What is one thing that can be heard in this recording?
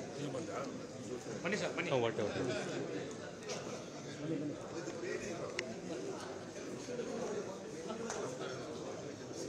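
Many voices murmur in a crowded hall.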